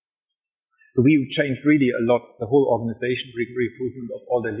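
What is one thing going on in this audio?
A man speaks through a microphone to a room, with pauses.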